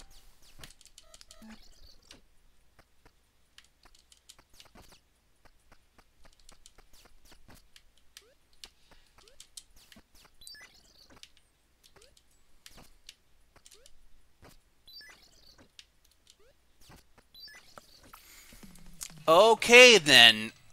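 Retro video game sound effects beep and blip.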